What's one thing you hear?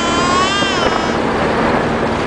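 A young child laughs close by.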